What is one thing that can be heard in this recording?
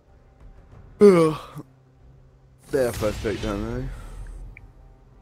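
A young man exclaims loudly close to a microphone.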